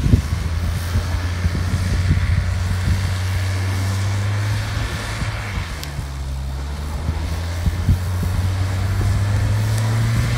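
A car engine roars steadily at high revs.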